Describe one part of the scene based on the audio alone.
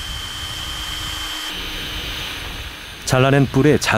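A power drill whirs steadily up close.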